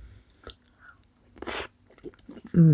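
A young woman bites into a sushi roll close to a microphone.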